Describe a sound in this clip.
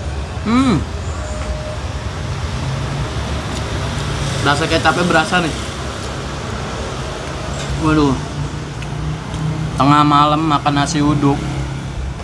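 A man speaks with animation, close up.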